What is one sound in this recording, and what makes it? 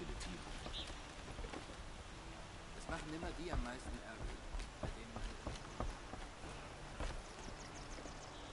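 Footsteps thud quickly on wooden planks.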